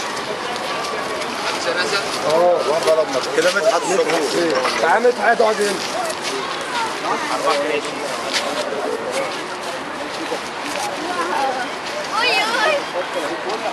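A group of people talks and chatters nearby outdoors.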